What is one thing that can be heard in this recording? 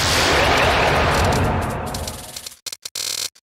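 A loud game explosion bursts and fades away.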